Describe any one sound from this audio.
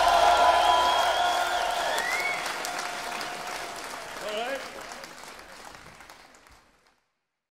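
A rock band plays loudly in a large hall and slowly fades out.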